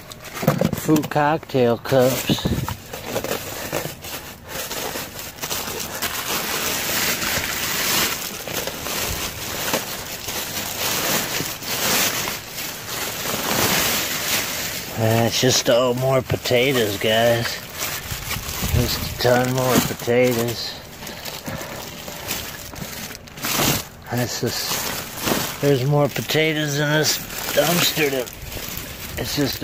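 Plastic bags rustle and crinkle up close.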